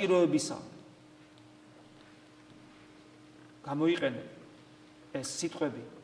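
A man speaks slowly and emphatically into a microphone, with pauses, in a slightly echoing room.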